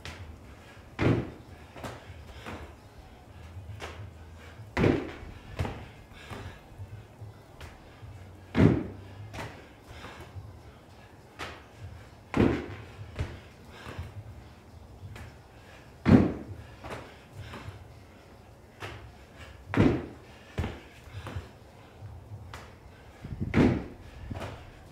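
Feet thud on a wooden box as a man jumps onto it, again and again.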